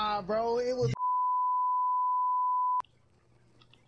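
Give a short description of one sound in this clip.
A steady high beep sounds, then cuts off.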